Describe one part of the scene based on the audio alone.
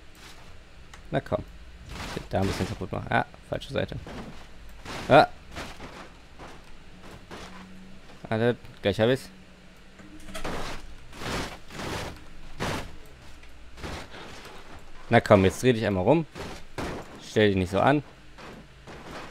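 A young man talks with animation close into a microphone.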